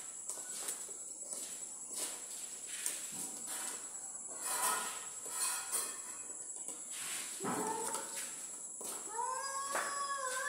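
A hand tool chips and scrapes at a plaster wall with short repeated knocks.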